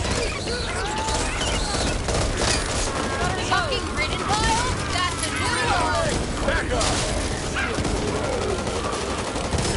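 Creatures snarl and screech as they attack.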